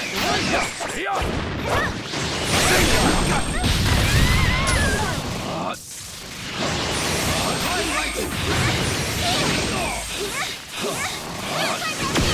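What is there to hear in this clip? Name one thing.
Hits land with sharp thuds.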